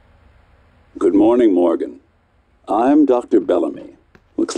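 A man speaks calmly through a loudspeaker.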